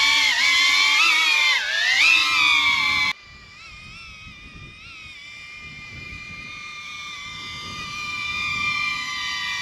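A small drone buzzes with a high whine, loud and close, then quieter and farther off.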